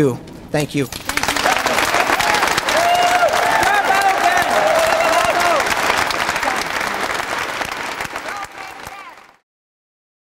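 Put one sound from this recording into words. People applaud and cheer.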